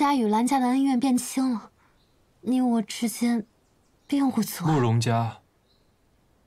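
A young woman speaks softly and earnestly, close by.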